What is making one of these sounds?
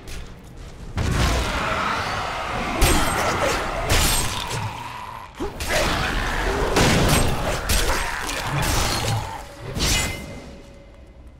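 Magic blasts whoosh and burst.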